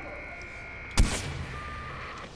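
A sniper rifle fires a single loud, sharp shot.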